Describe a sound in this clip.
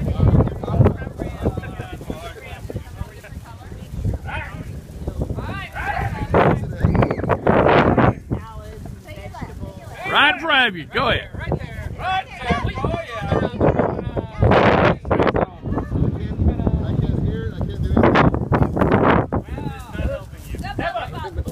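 Several men and women talk and cheer loudly nearby outdoors.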